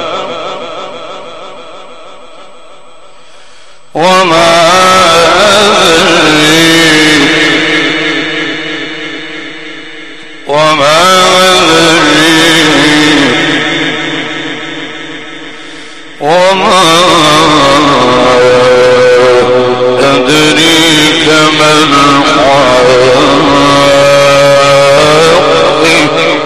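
A man chants in long, melodic phrases through a microphone, with a strong echo.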